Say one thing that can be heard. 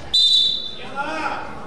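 A referee blows a short, sharp whistle.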